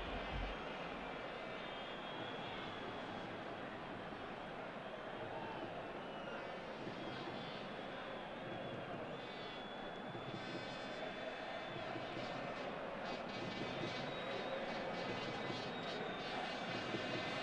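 A large stadium crowd whistles and chants in a steady roar.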